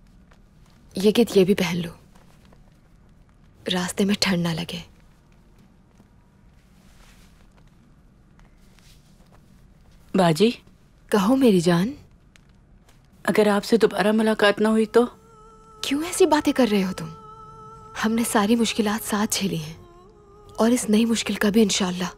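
A young woman speaks softly and gently, close by.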